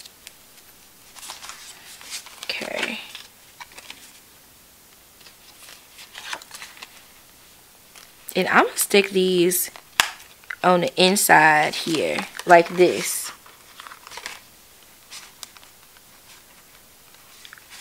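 Paper cards rustle and slide as they are handled.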